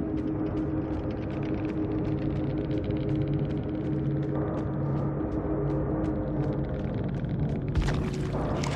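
Rapid ticking sounds as points count up.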